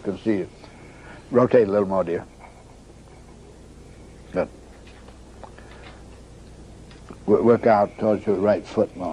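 An elderly man speaks calmly nearby, in short bursts.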